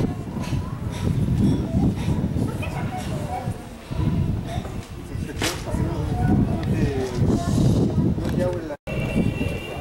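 A crowd murmurs and chatters in an echoing hall.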